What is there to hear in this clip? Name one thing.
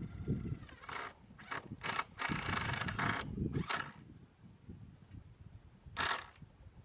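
An electric screwdriver whirs in short bursts close by.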